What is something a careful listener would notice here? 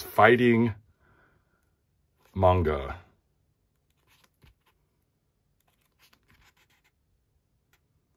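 Paper pages rustle as a book is leafed through.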